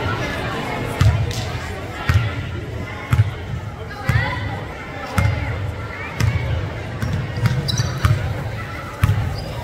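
A basketball bounces on a wooden floor with hollow thumps.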